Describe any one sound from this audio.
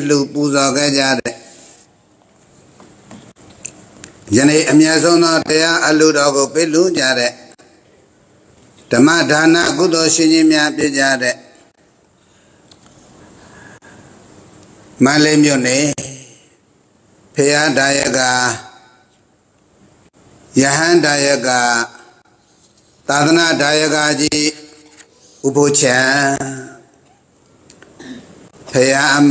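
An elderly man reads aloud slowly into a microphone, in short phrases with pauses between them.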